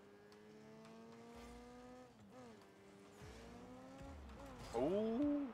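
A video game car engine hums and rises in pitch.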